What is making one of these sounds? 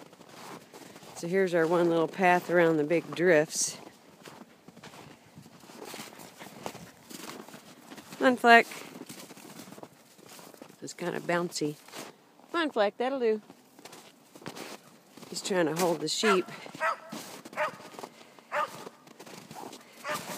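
A dog bounds through deep snow, paws crunching.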